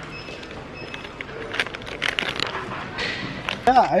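Plastic packaging crinkles in a man's hands.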